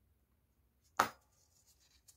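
A small metal tool is set down on a table with a knock.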